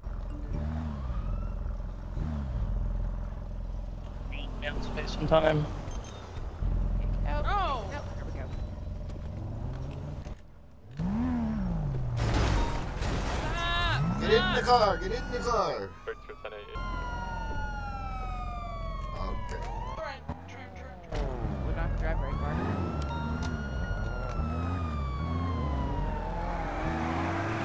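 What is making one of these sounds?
A car engine hums and revs as a car drives.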